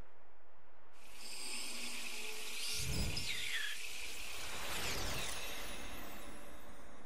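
A bright, shimmering sparkle rings out and fades away.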